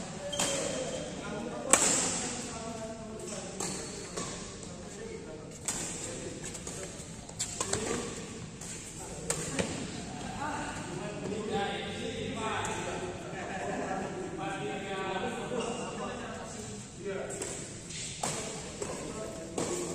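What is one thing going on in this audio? Rackets strike a shuttlecock with sharp smacks in a large echoing hall.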